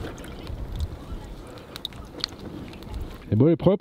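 Hands squelch wet fish in water.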